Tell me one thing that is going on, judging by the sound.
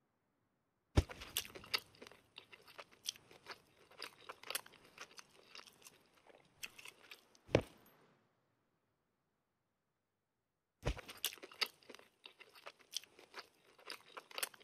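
Food is chewed with wet, crunchy bites in short bursts.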